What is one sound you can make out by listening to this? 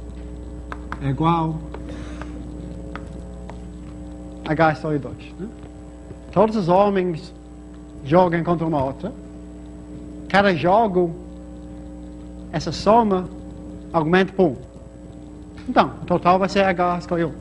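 A young man speaks calmly and explains.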